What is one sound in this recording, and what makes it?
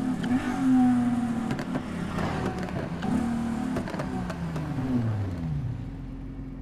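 A sports car engine revs and downshifts as the car slows down.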